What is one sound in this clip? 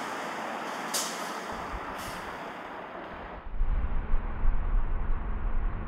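A bus rolls by with a low engine rumble.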